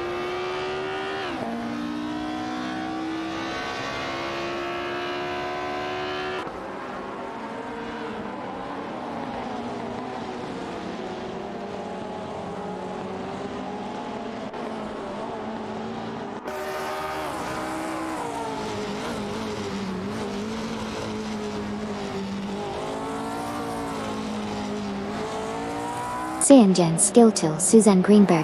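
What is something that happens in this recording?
A racing car engine roars at high revs, its pitch rising and dropping with gear changes.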